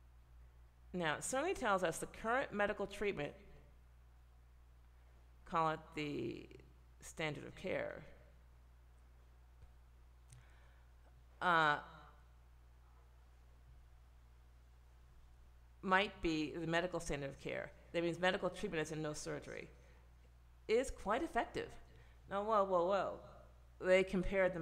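A middle-aged woman speaks calmly and closely into a microphone, with pauses.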